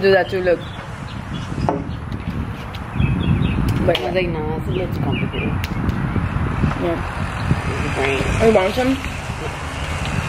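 Young women talk casually nearby, outdoors.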